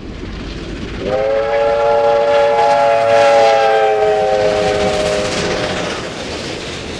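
A steam locomotive's whistle blows a long, loud chord.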